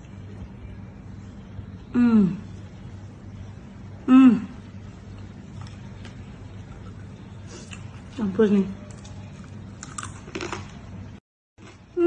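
A young woman chews crunchy food.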